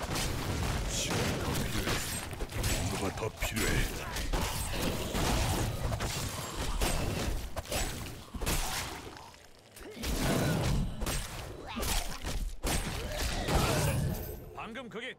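Weapons clash and strike in a fast, noisy fight.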